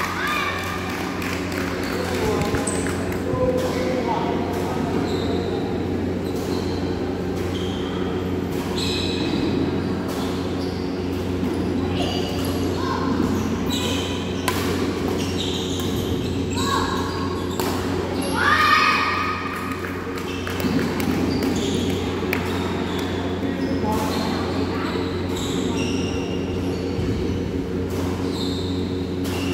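Footsteps squeak and patter on a wooden floor.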